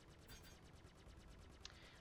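Laser cannons fire in rapid bursts.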